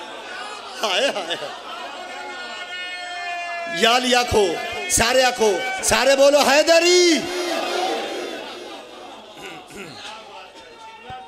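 A man sings loudly into a microphone, heard through loudspeakers in an echoing hall.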